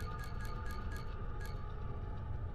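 Short electronic menu blips tick in quick succession.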